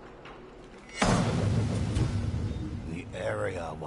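A large drum is struck with a loud, deep boom that rings out.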